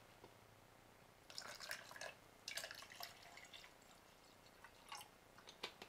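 Water pours from a plastic bottle into a metal cup.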